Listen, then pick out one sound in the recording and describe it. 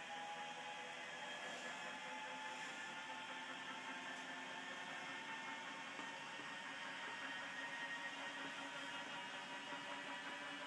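An electric lift motor whines steadily as a platform rises.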